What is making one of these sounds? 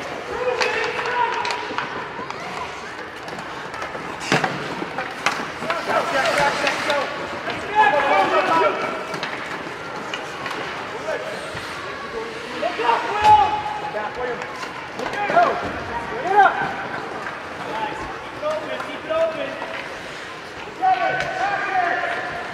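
Spectators cheer and shout in an echoing rink.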